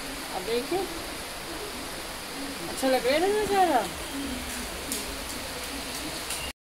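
Light rain falls steadily outdoors.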